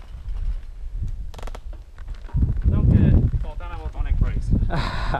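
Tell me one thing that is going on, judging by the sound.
Bicycle tyres roll and crunch over a rocky dirt trail.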